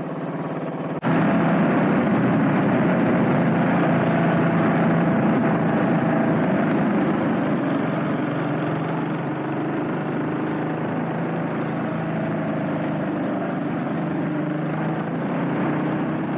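Wind rushes past loudly while riding.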